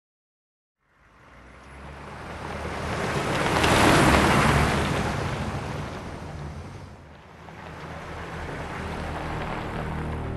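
A heavy vehicle's engine approaches and drives past.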